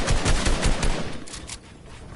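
Gunshots fire rapidly, close by.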